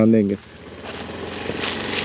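A scooter engine hums as it rides.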